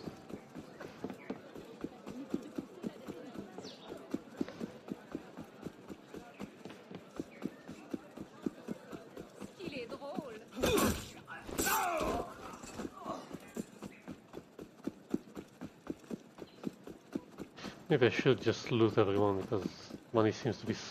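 Quick footsteps run over cobblestones.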